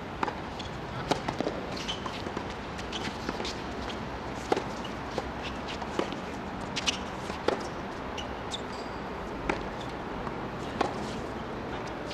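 Tennis shoes squeak and scuff on a hard court.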